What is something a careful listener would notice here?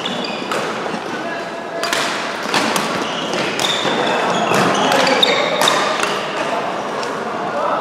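Sport shoes squeak on a court floor.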